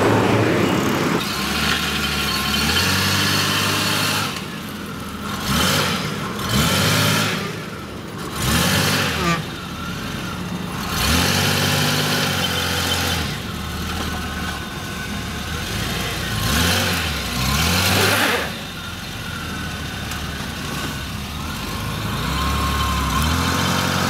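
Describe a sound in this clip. A car engine idles roughly and revs up and down repeatedly, close by.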